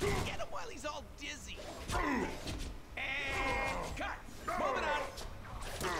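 Heavy punches and blows thud.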